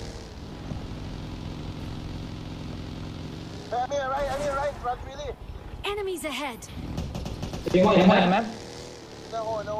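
A small off-road buggy engine hums steadily while driving.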